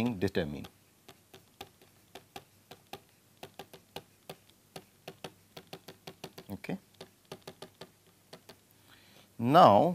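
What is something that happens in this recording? A pen taps and clicks on a hard writing surface.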